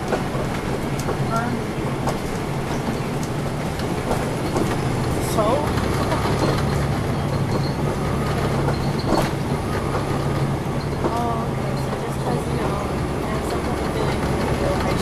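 The bus body rattles and clatters over the road.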